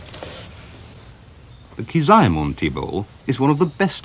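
Cloth rustles softly as hands unfold it.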